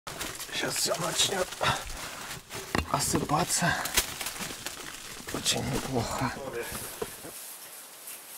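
Loose stones crunch and scrape underfoot close by.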